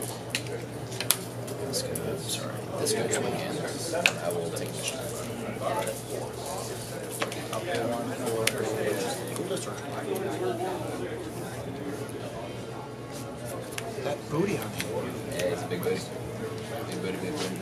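Card sleeves shuffle and riffle in hands.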